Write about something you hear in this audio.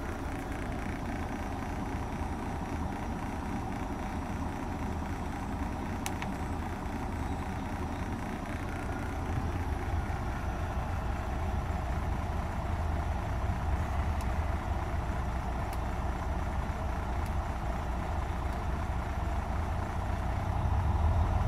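A truck engine idles with a steady low rumble.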